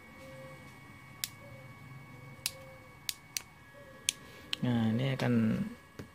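A plastic tool clicks and snaps in a hand.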